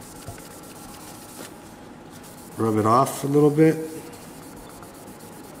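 A cloth rubs and wipes across a plastic surface.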